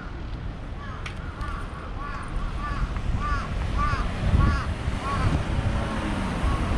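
A pedestrian crossing signal chirps in quick repeated notes.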